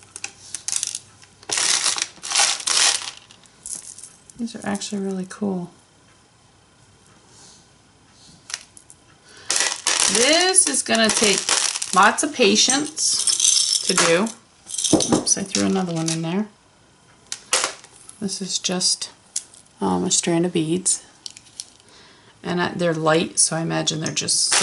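Beads click and rattle as a hand sorts through them.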